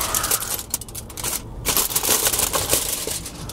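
Aluminium foil crinkles and rustles close by.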